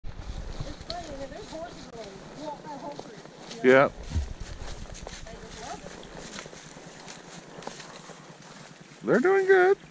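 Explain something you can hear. Horse hooves crunch through dry leaves.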